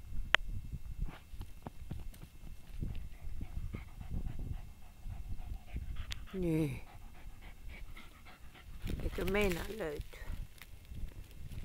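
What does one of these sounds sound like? A dog digs, scratching and rustling in dry grass and soil.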